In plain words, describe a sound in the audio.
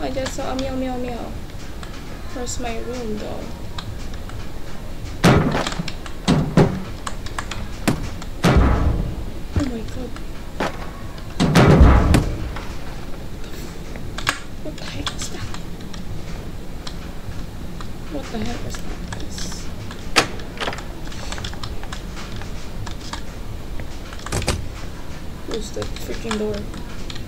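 A young woman talks casually into a microphone, close by.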